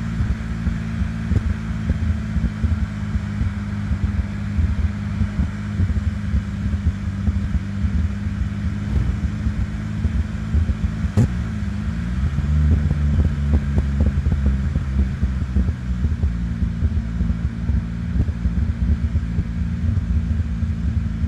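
A car engine rumbles steadily as it drives close by.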